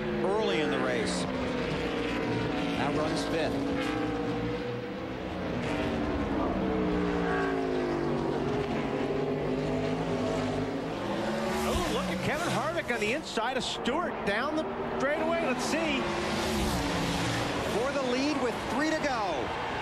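Race car engines roar loudly at high revs.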